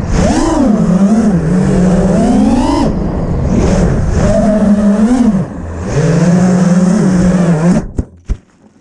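A small racing drone's motors whine, rising and falling in pitch.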